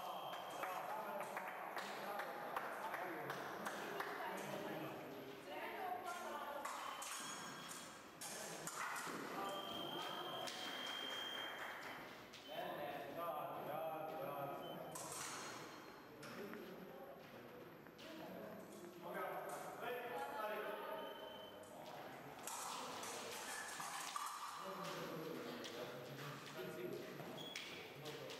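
Several people talk in a large echoing hall.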